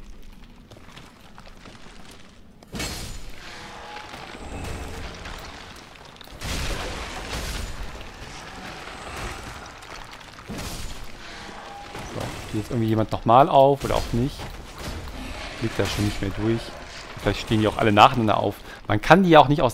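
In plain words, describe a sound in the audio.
A sword clangs against armour and shields in a fight.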